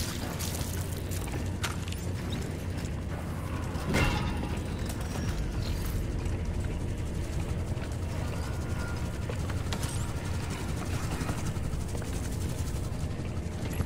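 Heavy boots thud on a metal floor.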